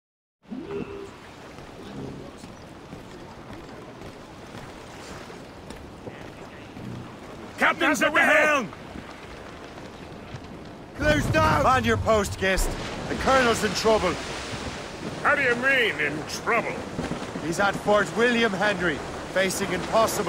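Waves wash against a sailing ship's hull.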